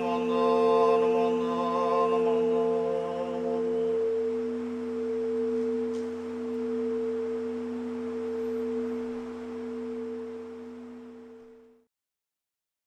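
A large bowl bell rings out with a long, humming tone that slowly fades away.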